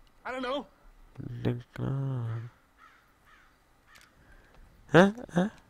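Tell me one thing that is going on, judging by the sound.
A man with a higher voice speaks with animation nearby.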